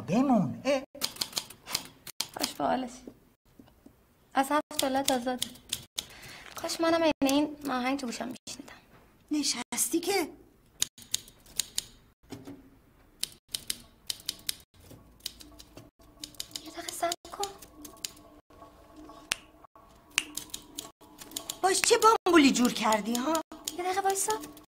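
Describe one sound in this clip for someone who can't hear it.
A young woman speaks calmly and with animation close by.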